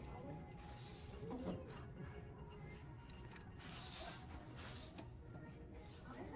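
A fabric bag rustles as it is handled.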